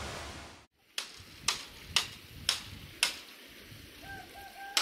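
A machete chops sharply into bamboo.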